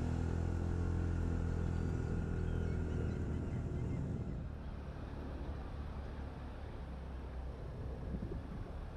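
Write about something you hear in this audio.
A motorbike engine hums steadily, then eases off.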